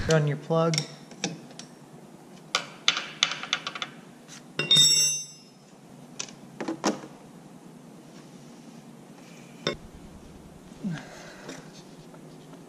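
Metal parts clink and rattle up close.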